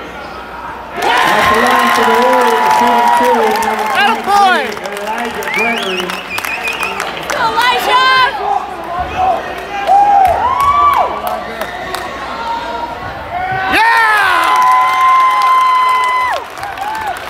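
A crowd in a large echoing gym cheers and shouts loudly.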